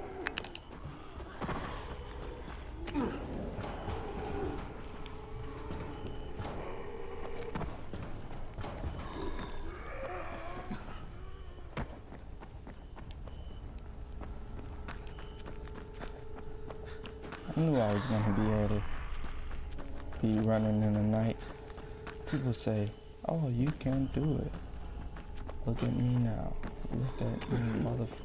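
Footsteps thud on hard ground and wooden stairs.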